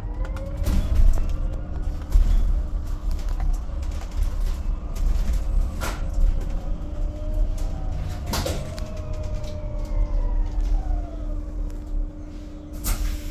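A bus whines as it speeds up and slows down.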